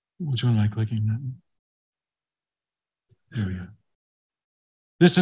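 A man speaks calmly through a microphone on an online call, in short bursts.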